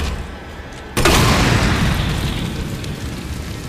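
A fire roars after a sudden burst of flame.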